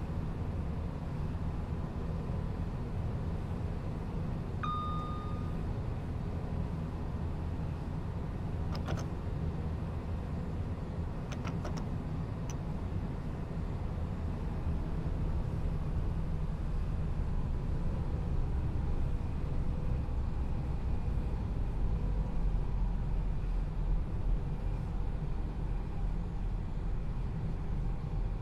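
A train rumbles steadily along the track, growing louder as it speeds up.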